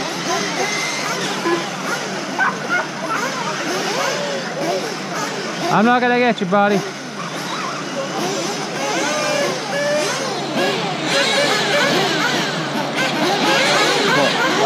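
Small electric race cars whine and buzz as they speed around a track, their pitch rising and falling.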